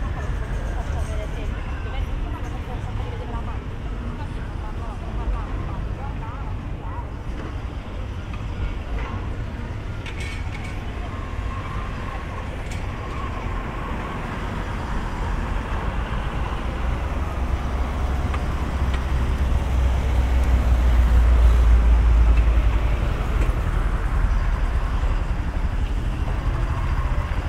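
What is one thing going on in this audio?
Wind blows steadily outdoors, rumbling louder for a while before easing.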